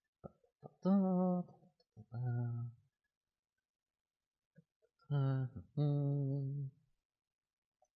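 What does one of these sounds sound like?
A man speaks in a drawn-out, playful character voice close by.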